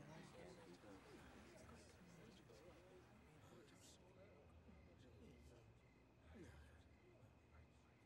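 A man speaks calmly and quietly.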